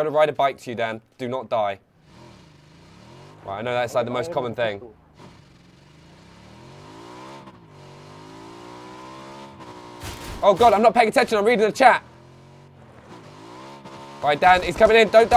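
A motorbike engine drones and revs.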